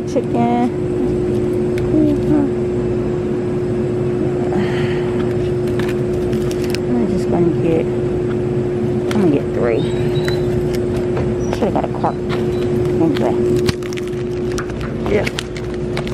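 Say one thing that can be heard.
Plastic packaging crinkles and rustles under a hand.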